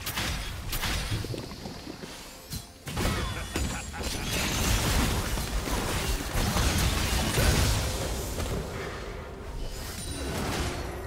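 Spell blasts, hits and explosions crackle and boom in a fast fight.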